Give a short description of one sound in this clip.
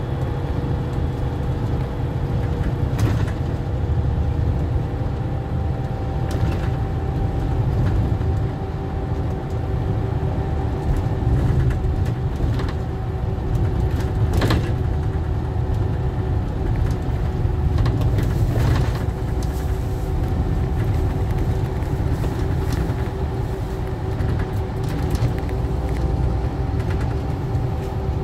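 A bus engine drones low and steady.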